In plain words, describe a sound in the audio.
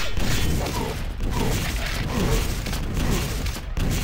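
Rocket explosions boom and roar.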